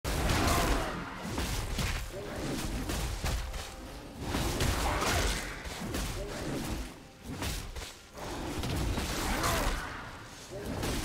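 Blades slash and magic effects burst in a fast fight.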